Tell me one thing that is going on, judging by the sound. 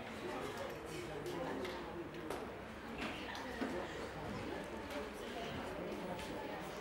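Teenage students talk and murmur quietly in a room.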